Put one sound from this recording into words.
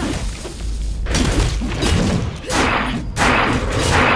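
Stone walls crumble and debris crashes down.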